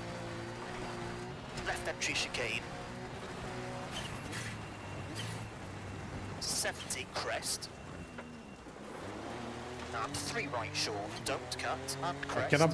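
Tyres crunch and skid on loose gravel.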